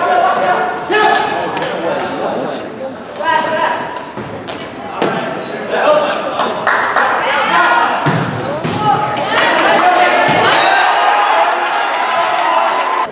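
Sneakers squeak sharply on a gym floor.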